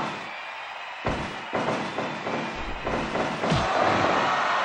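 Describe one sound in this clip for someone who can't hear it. Wrestling blows thud and slam in a video game.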